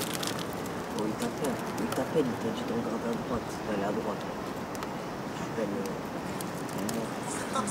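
Young men talk quietly nearby.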